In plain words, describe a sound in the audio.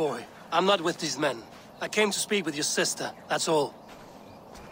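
A middle-aged man speaks calmly in a low voice.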